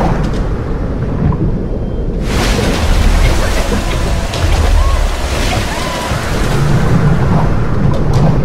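Water rumbles in a low, muffled underwater roar.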